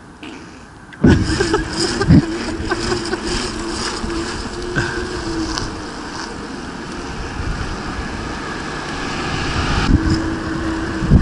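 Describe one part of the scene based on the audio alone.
Wind rushes past outdoors while cycling.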